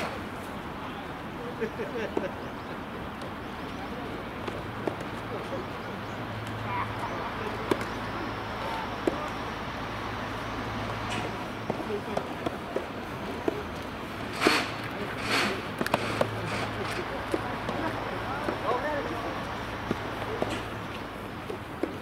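Sneakers scuff and squeak on the court.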